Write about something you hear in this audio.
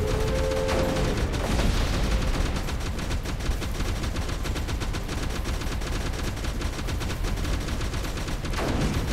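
Game weapons fire with rapid electronic blasts and pops.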